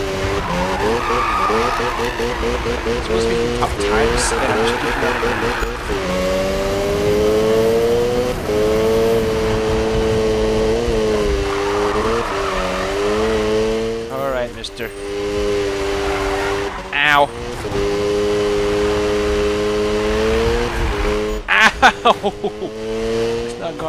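A car engine roars at high revs throughout, its pitch rising and falling with gear changes.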